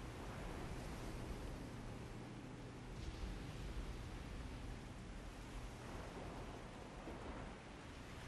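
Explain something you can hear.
A boat engine rumbles low.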